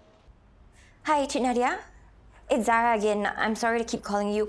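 A young woman talks on a phone.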